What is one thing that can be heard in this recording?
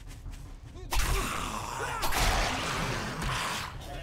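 A blade slashes into flesh with wet thuds.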